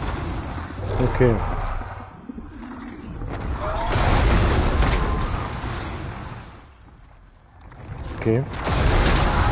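A dragon roars.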